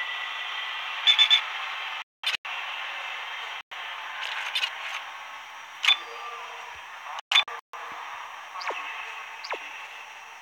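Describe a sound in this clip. Game menu sounds beep and chime as options are selected.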